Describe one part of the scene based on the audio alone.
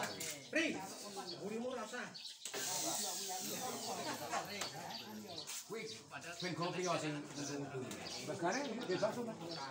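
Several men talk casually outdoors, close by and at a distance.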